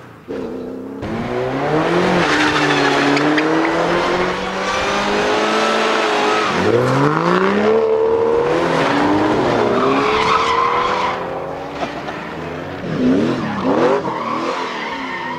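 A race car engine screams as the car drifts in circles.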